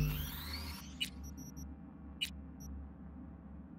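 Short menu clicks tick a few times.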